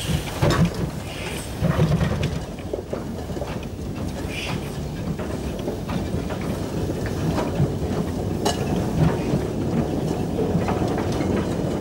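A small steam engine chuffs and hisses steam close by.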